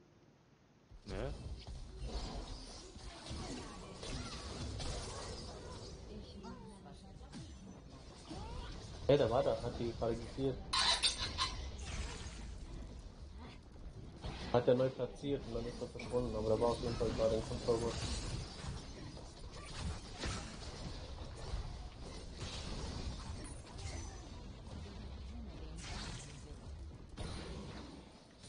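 Game sound effects of spells and combat crackle and boom.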